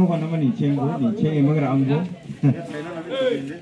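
A man speaks loudly to the group at the start.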